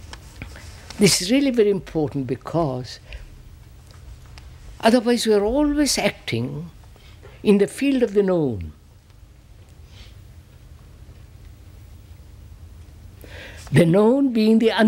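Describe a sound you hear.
An elderly man speaks slowly and thoughtfully into a microphone, pausing between phrases.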